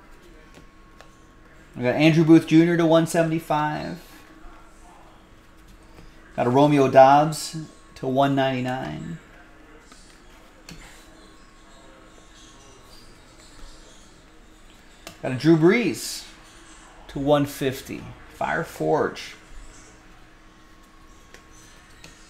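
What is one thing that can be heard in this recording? Cards rustle and flick in a man's hands.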